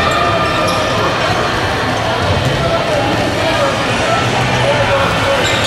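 Many children shout and chatter in a large echoing hall.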